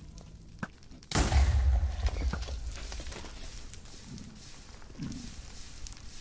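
Fire crackles close by.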